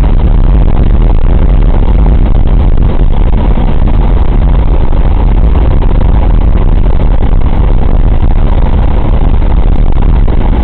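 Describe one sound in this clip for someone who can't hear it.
The radial piston engines of a B-24 bomber drone loudly, heard from inside the fuselage in flight.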